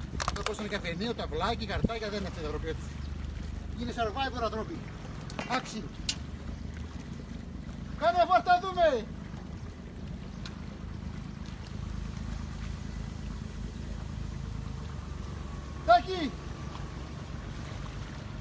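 Small waves lap gently on a stony shore.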